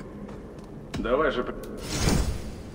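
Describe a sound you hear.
A man speaks briefly in a low voice, up close.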